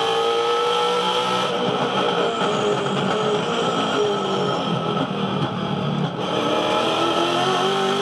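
A race car engine drops in pitch as the car slows.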